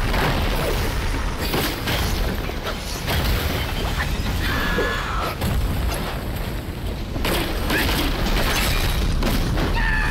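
Fiery blasts burst with heavy booms.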